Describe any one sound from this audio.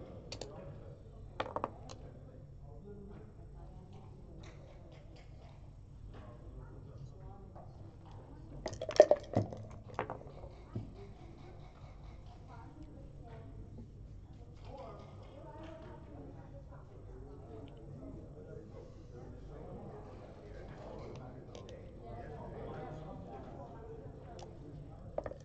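Game pieces click against a wooden board.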